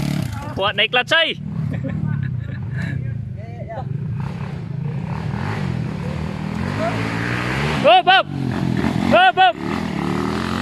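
A dirt bike engine revs sharply in short bursts.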